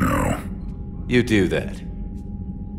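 A man answers briefly in a calm voice.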